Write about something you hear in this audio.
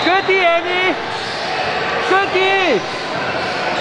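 A referee blows a whistle twice.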